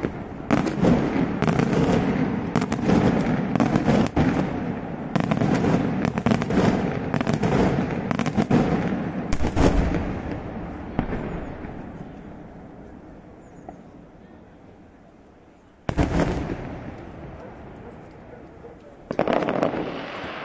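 Daytime fireworks bang in rapid bursts, echoing off the hills.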